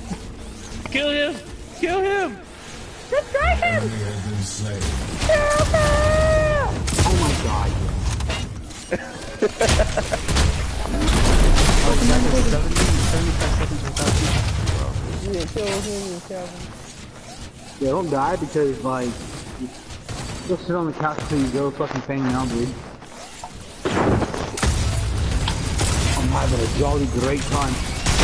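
Weapons fire and energy blasts burst in a fast video game battle.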